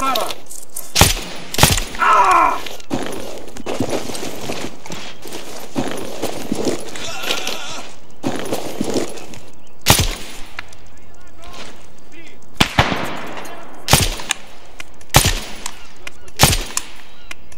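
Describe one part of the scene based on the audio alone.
Rifle shots crack sharply, one at a time.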